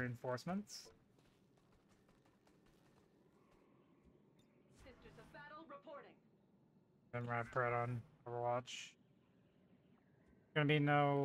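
A young man talks with animation, close to a microphone, in short bursts.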